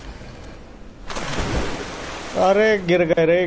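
Water splashes loudly as a body plunges in.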